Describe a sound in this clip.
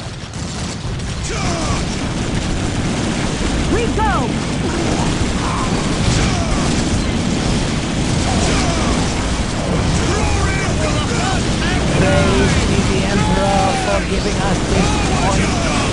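Gunfire crackles steadily.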